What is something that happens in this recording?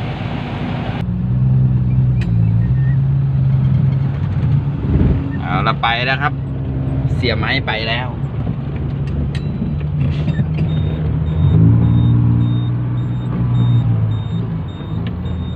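A diesel engine drones loudly from inside a cab.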